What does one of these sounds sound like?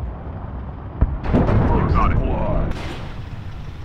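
A helicopter explodes with a loud blast.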